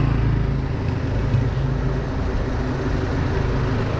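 A motorcycle engine putters past close by.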